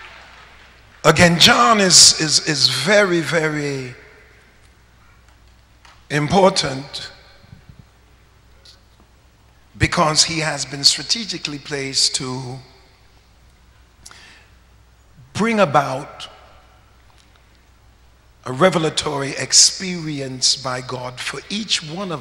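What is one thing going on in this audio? A man preaches with animation into a microphone, in bursts with pauses, in a large echoing hall.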